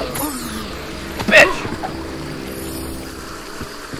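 A magic spell crackles and zaps.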